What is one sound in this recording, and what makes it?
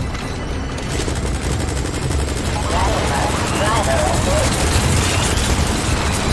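A helicopter's rotor thumps and roars close by.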